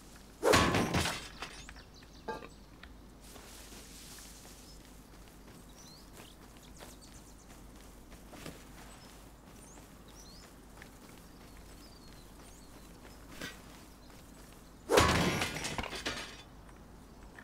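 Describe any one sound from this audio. Heavy blows crash and clatter against metal.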